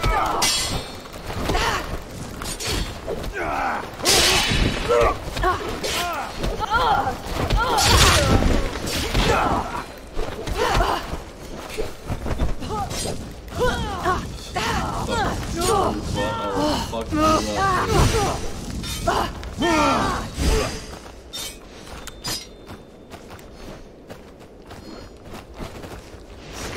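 Swords clash and clang in quick bursts.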